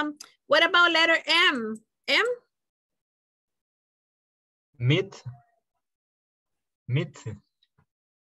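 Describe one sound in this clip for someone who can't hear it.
A young man speaks clearly and with animation into a close microphone.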